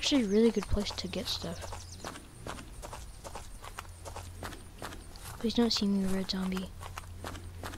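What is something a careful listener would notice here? Footsteps crunch on sand at a steady walking pace.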